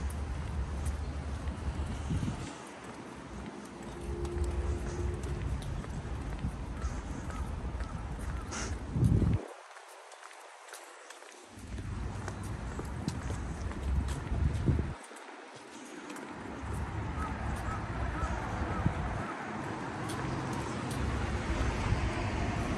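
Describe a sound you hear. Cars drive past on a nearby road.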